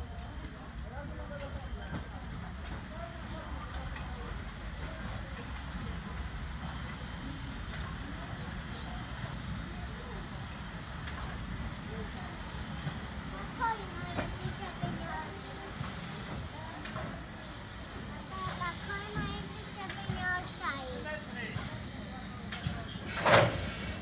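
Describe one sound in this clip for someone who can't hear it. A steam locomotive rumbles slowly closer along the rails.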